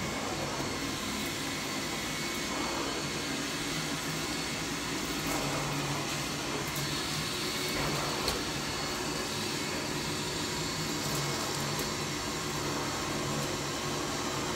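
A vacuum cleaner hums steadily as a nozzle sucks across a carpet.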